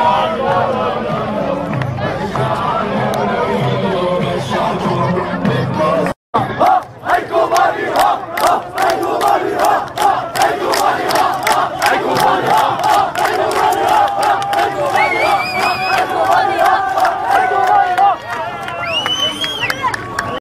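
A large crowd chants loudly outdoors.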